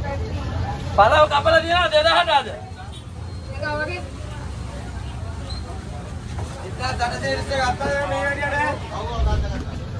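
A man talks loudly with animation nearby.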